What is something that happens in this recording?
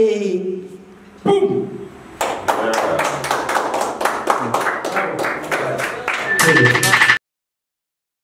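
A band plays an upbeat song.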